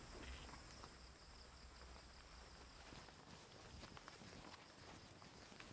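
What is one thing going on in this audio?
Footsteps pad softly across grass.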